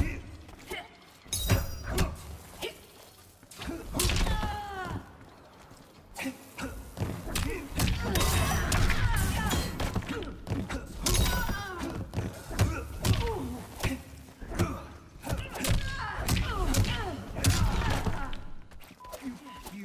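Punches and kicks land with heavy thuds and smacks.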